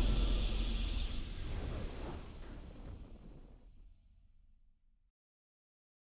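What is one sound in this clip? A triumphant game fanfare swells and slowly fades away.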